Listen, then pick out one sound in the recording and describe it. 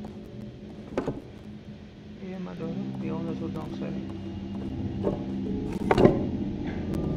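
A wooden chess piece knocks down onto a board.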